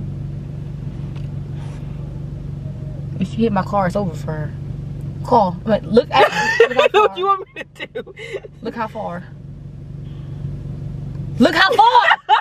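A low engine hum drones steadily inside a car.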